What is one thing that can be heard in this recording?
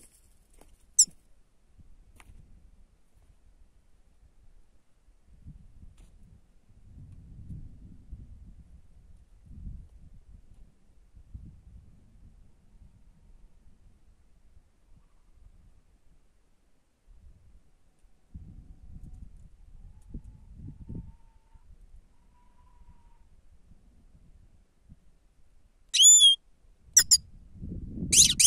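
A small bird chirps close by in short, high, sharp calls.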